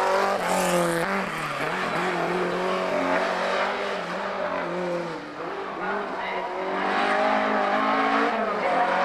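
A racing car engine roars loudly, rising and falling as the car drives through the corners.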